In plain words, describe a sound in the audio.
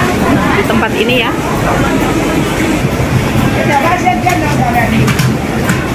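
Many people chatter in a busy, echoing market.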